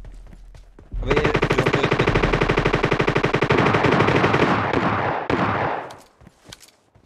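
Rapid gunshots rattle in a long burst.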